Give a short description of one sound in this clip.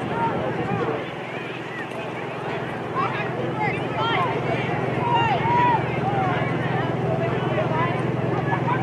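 Young women shout to each other in the distance outdoors.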